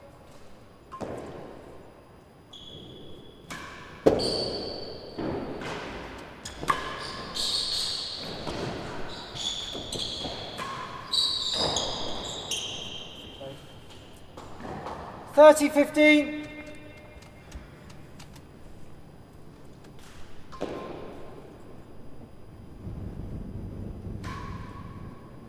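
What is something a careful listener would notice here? A ball is struck by a racket and thuds off the walls of a large echoing hall.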